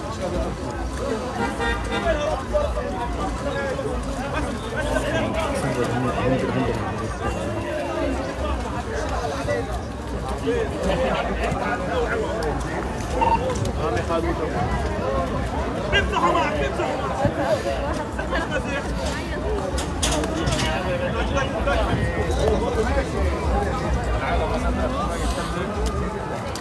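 A crowd of men chatters and shouts excitedly outdoors nearby.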